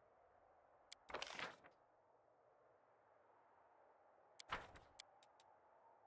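A game menu gives short click sounds as buttons are pressed.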